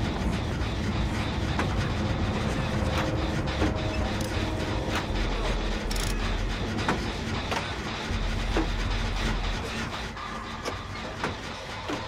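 A machine clicks and rattles while being worked on.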